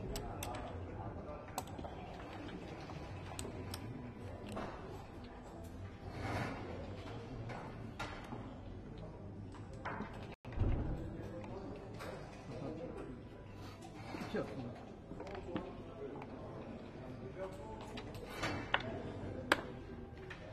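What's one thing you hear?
Backgammon checkers click as they are moved on a wooden board.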